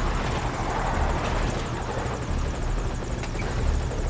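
A truck crashes and tips over on rocks.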